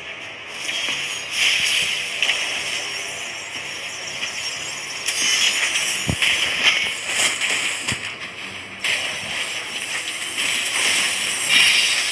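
Game spell effects whoosh and burst in quick succession.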